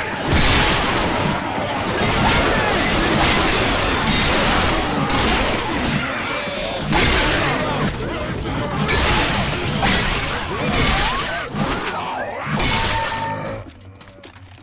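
Zombies snarl and growl up close.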